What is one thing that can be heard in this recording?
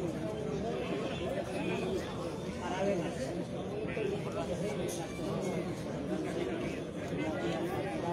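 A crowd of men and women chatter and call out nearby, outdoors.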